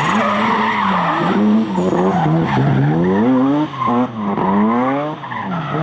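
Tyres screech on wet tarmac.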